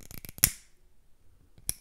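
A lighter clicks and flares close to a microphone.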